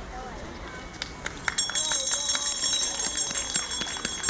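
A small music box plays a bright tinkling tune close by.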